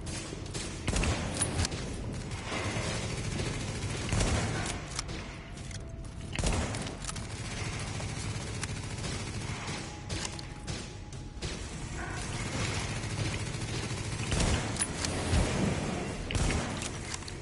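Sniper rifle shots crack loudly, one after another.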